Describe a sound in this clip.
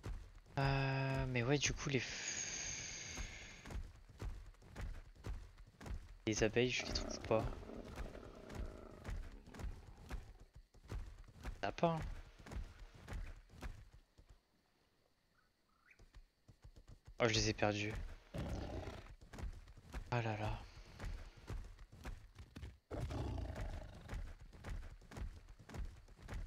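A large animal's feet thud steadily on soft ground as it walks.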